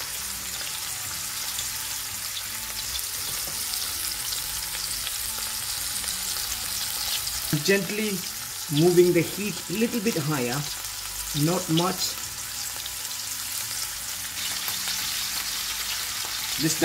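Meat sizzles and crackles steadily in hot fat.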